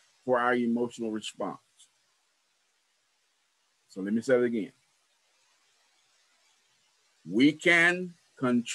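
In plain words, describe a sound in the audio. A man speaks calmly over an online call, with pauses between phrases.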